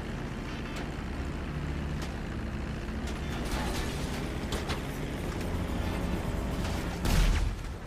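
A small plane's propeller engine drones steadily.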